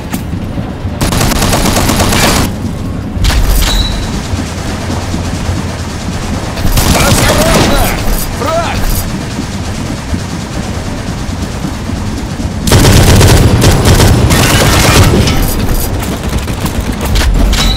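Gunfire from a rifle rattles in rapid bursts.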